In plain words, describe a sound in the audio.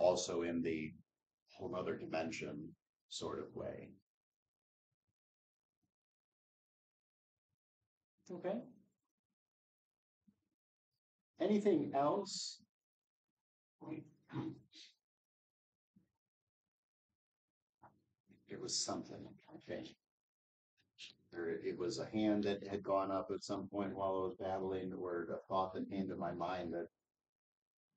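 A man speaks calmly nearby, pausing often between phrases.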